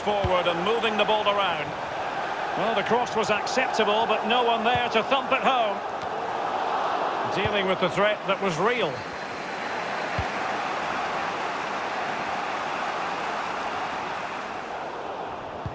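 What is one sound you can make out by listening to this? A large crowd cheers and murmurs steadily in a big open stadium.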